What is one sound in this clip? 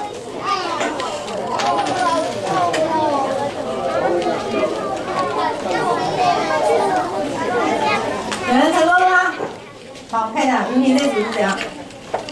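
Several children chatter nearby.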